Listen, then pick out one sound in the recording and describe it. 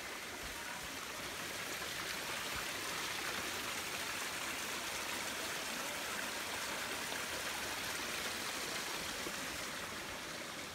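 Water flows and trickles over rocks nearby.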